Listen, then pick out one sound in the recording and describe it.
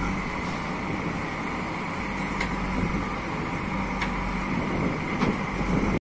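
A backhoe loader's diesel engine rumbles steadily nearby.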